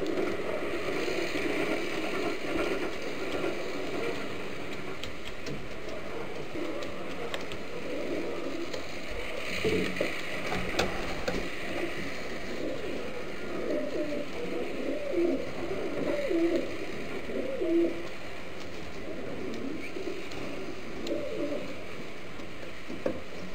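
Pigeons coo softly nearby.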